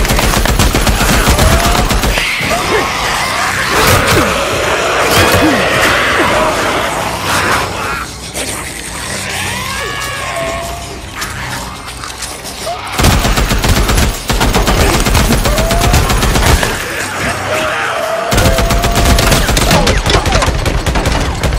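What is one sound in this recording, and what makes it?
Creatures snarl and groan close by.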